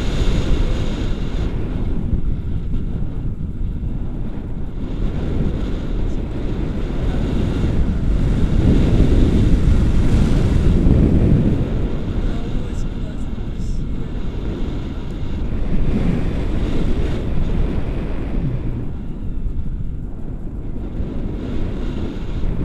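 Strong wind rushes and buffets loudly past close by.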